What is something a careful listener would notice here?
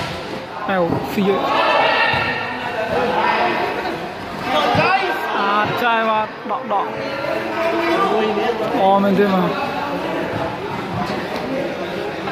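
Young men shout and call out to one another in a large echoing hall.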